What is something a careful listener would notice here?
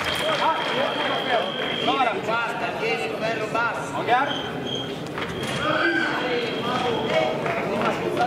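A man calls out loudly to the fencers, heard from a distance in a large echoing hall.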